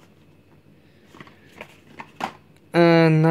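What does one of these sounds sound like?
A plastic blister pack rustles as a hand sets it down.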